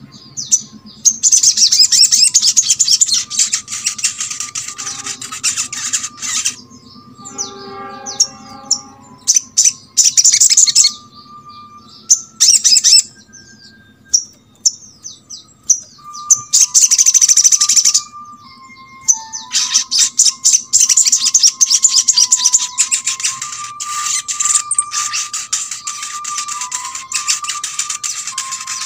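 A small bird sings loud, fast, chattering trills close by.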